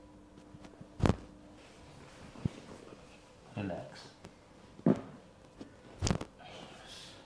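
Joints crack sharply during an adjustment.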